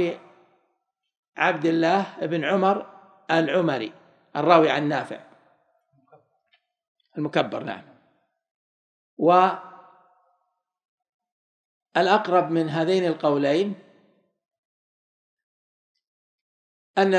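A man reads aloud through a microphone in measured phrases, with pauses between them.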